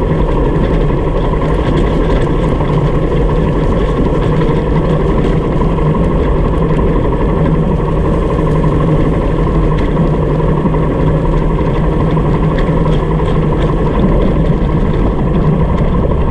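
Tyres crunch and rattle over a rough gravel track.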